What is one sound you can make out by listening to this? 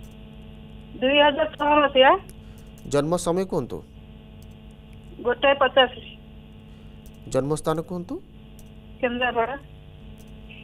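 A man speaks into a microphone in short phrases, with pauses between them.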